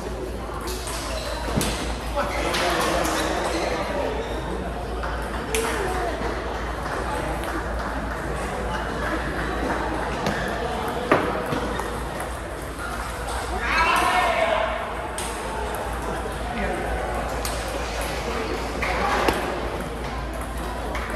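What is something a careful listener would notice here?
People talk in the background of a large echoing hall.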